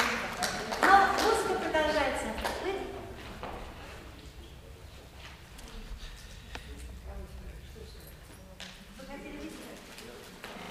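An elderly woman speaks calmly through a microphone in an echoing hall.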